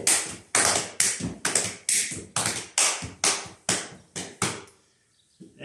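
Hands clap in a quick, even rhythm.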